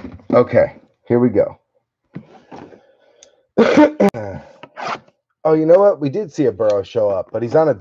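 A cardboard box slides across a tabletop.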